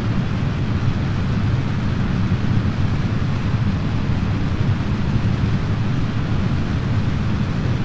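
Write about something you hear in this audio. A rocket engine roars steadily as a rocket lifts off.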